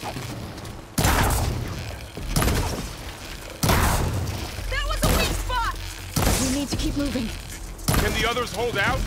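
Arrows strike a target with sharp, crackling bursts again and again.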